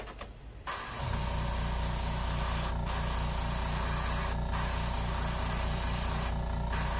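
A hand-held electric tool whirs steadily up close.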